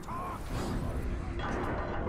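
A blade swings and strikes with a sharp hit.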